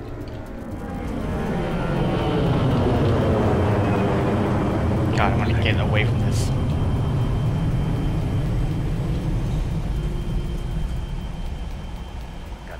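A jet engine roars loudly nearby.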